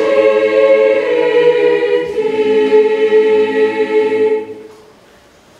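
A large choir sings in harmony in an echoing hall.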